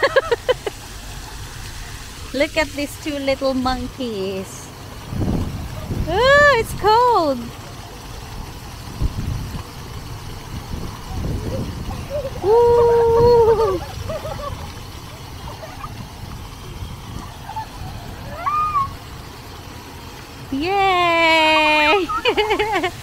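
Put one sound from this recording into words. Fountain jets spray and splash steadily outdoors.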